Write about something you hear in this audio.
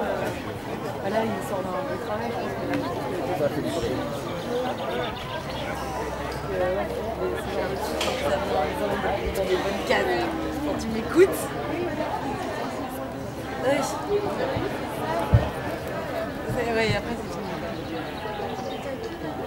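A horse's hooves thud softly on sand at a canter.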